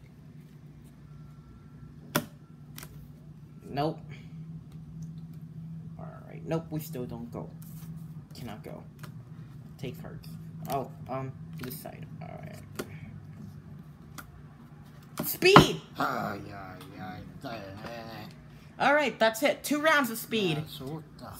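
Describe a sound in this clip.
Playing cards slap and slide on a wooden table.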